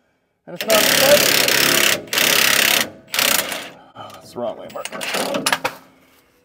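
A pneumatic impact wrench whirs loudly in short bursts, close by.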